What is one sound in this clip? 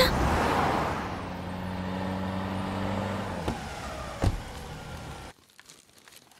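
A car engine hums as a car drives past.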